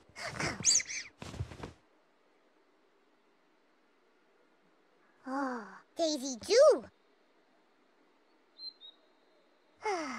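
A woman calls out in a high, playful, sing-song voice.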